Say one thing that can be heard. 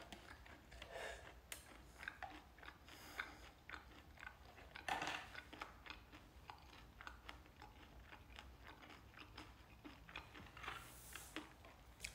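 A young man chews food.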